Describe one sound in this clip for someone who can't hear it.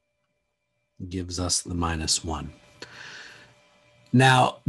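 A man speaks calmly and explains into a close microphone.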